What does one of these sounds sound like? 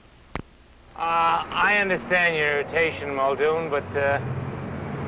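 A man speaks loudly and with emotion nearby.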